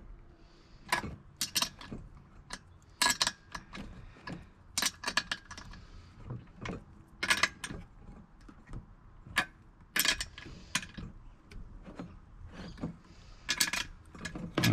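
Small metal parts click and tap against a metal plate.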